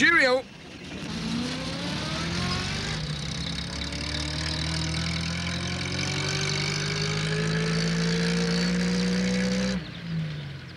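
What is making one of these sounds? A van engine hums and rises in pitch as it drives away.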